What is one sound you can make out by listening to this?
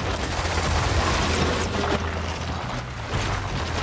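Explosions boom and crackle in a fierce fight.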